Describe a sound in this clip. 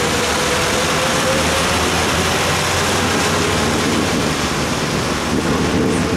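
A truck engine rumbles on the road ahead.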